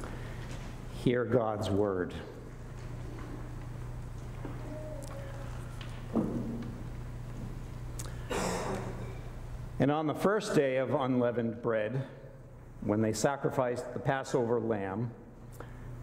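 A man speaks calmly through a microphone in a large echoing hall, pausing between phrases.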